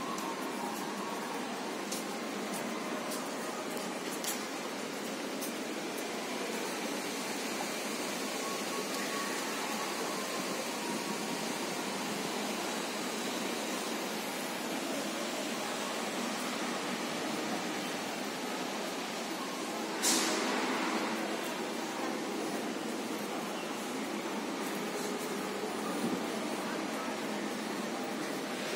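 A steady murmur of people and distant traffic fills an open walkway.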